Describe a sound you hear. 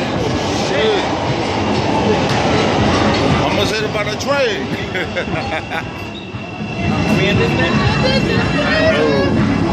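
Train wheels screech and squeal on the rails.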